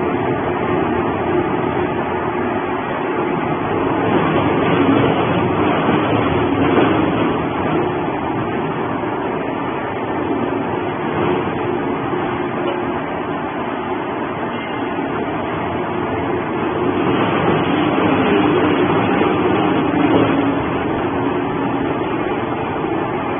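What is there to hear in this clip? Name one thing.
A shredder grinds and tears through cardboard with a loud, steady roar.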